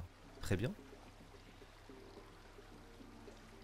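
A man sips a drink from a mug.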